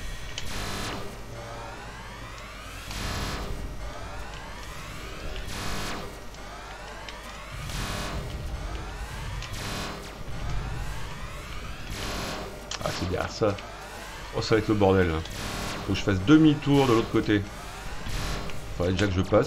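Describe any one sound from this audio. Laser shots zap rapidly in a video game.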